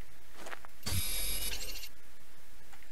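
A scanning device hums with a bright electronic buzz.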